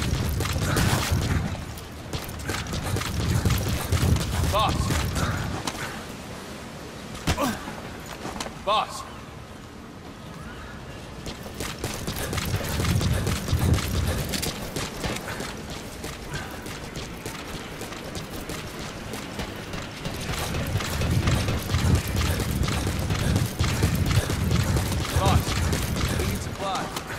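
Heavy footsteps run quickly across a hard deck.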